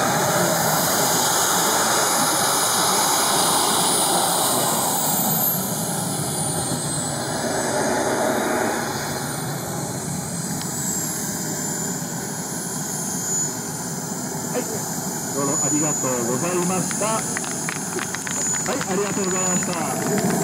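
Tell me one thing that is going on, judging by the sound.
A model jet's turbine engine whines loudly.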